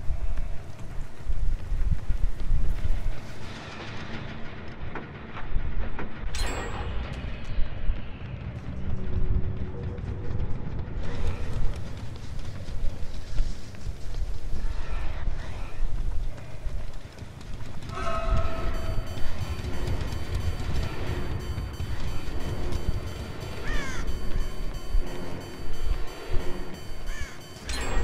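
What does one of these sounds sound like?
Heavy footsteps thud quickly over gravel and grass.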